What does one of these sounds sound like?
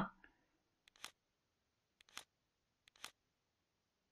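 A game menu blips softly as selections change.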